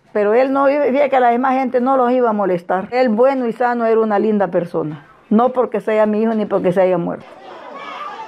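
An older woman speaks emotionally, close to a microphone.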